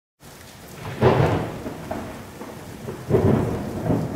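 Thunder rumbles and booms.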